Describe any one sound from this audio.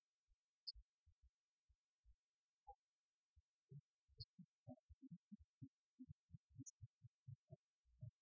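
A keyboard plays a melody.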